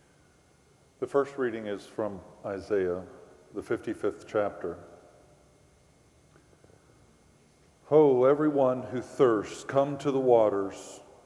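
An older man reads aloud calmly through a microphone.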